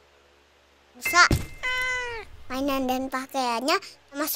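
A young girl speaks with surprise.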